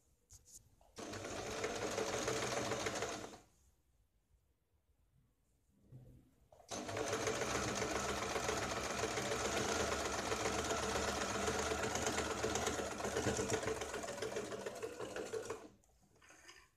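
A sewing machine runs in fast bursts, whirring and clattering up close.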